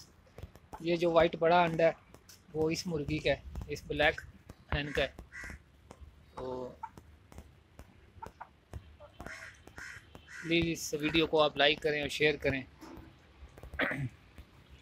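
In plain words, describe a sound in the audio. A hen clucks close by.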